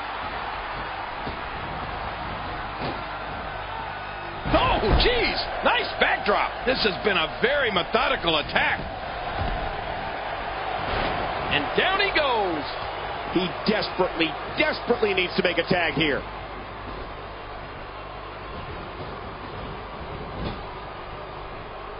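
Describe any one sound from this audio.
A large crowd murmurs and cheers steadily in a big echoing arena.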